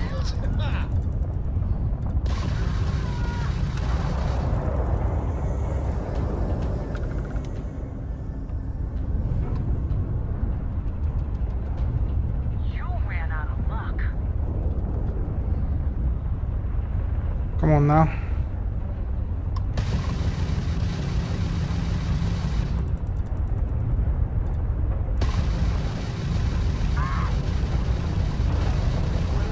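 A spaceship engine rumbles low and steadily.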